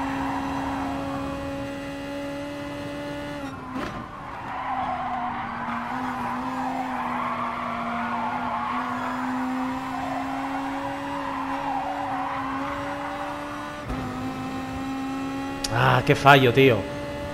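A race car engine drones steadily at high speed, its pitch dropping and rising with gear changes.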